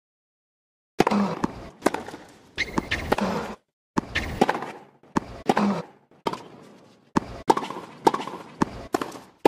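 A tennis ball is struck back and forth with sharp pops of a racket.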